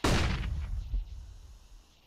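A rifle fires a short burst up close.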